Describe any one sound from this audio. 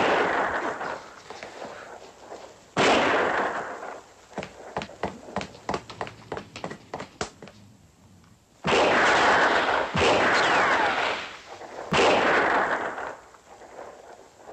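Revolver shots bang and echo off stone walls.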